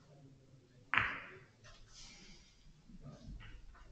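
Billiard balls knock against each other and the cushions.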